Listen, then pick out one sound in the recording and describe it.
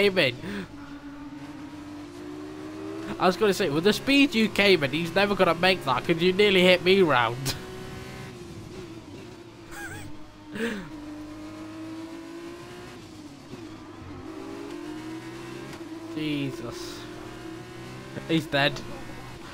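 A racing car engine whines loudly, rising and dropping in pitch as it shifts gears.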